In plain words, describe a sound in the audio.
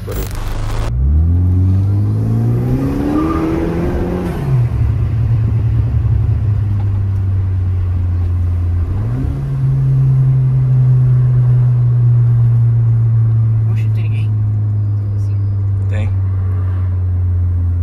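A car engine revs up as the car accelerates, then drops in pitch at each gear change and hums steadily.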